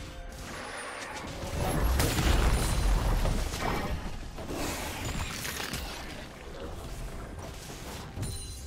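Fighting sound effects from a video game whoosh and crash.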